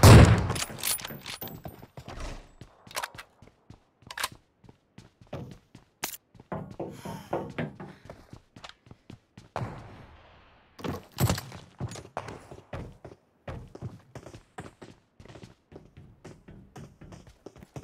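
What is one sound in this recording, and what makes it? Footsteps thud quickly on hard floors.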